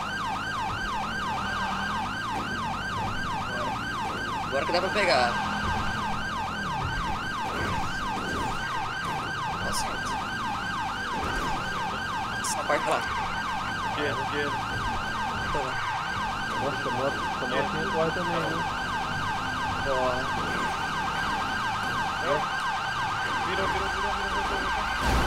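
A police siren wails rapidly and steadily.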